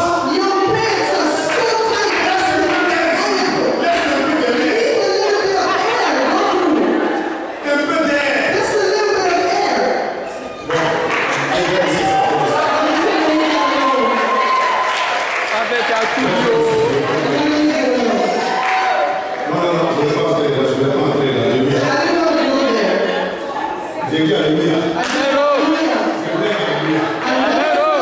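A man speaks with animation through a microphone, heard over loudspeakers in an echoing hall.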